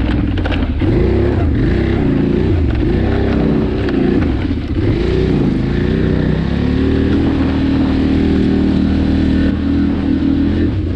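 A quad bike engine revs up and down loudly, close by.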